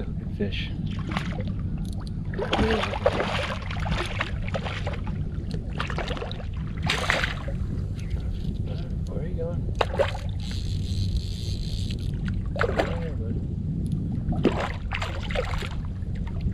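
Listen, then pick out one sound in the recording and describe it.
A fishing reel clicks as line is reeled in.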